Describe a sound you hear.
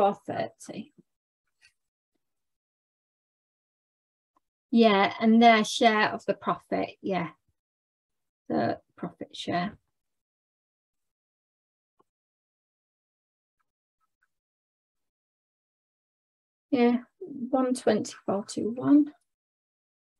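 A young woman explains calmly, heard through a microphone.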